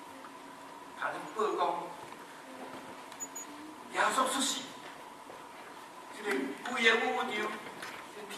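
An elderly man speaks with animation into a microphone in an echoing hall, pausing between phrases.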